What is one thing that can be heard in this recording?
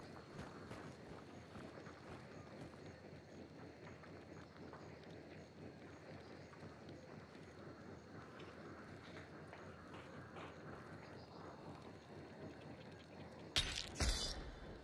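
Footsteps crunch steadily on hard ground.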